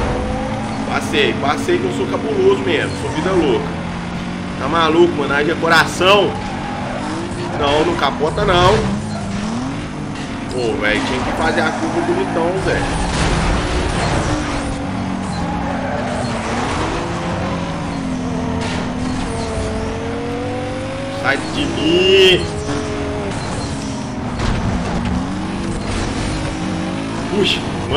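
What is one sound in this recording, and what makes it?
A racing car engine roars and revs up and down.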